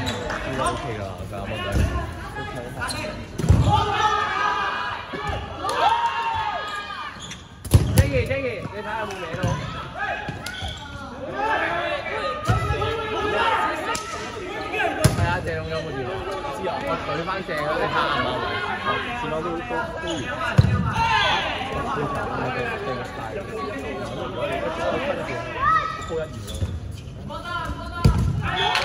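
Young people shout and call out with excitement across a large echoing hall.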